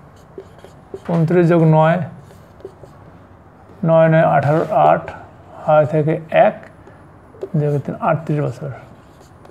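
An elderly man speaks calmly and clearly, close by.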